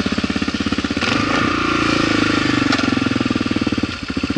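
A single-cylinder motorcycle revs up briefly.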